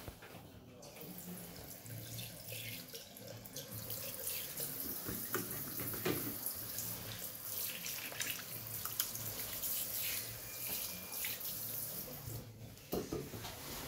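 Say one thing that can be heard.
Water runs from a tap and splashes into a sink.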